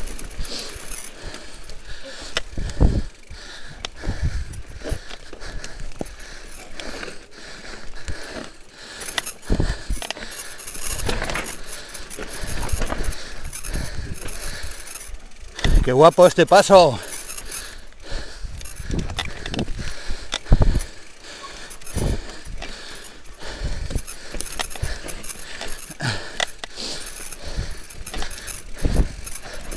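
A bicycle rattles and clunks over bumps and stones.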